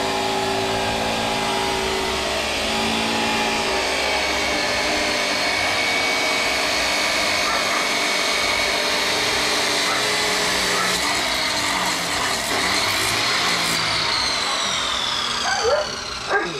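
An angle grinder whirs steadily nearby.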